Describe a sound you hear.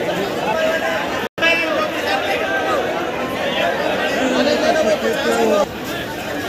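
Many men and women talk at once nearby in a busy crowd.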